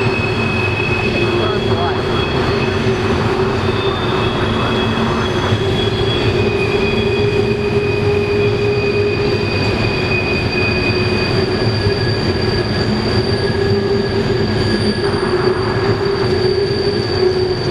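Steel wheels squeal on the track.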